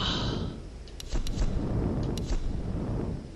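Short menu clicks tick from a video game.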